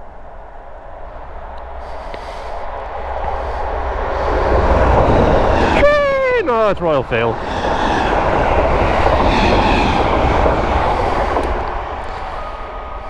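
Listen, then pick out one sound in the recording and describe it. A train rumbles loudly past.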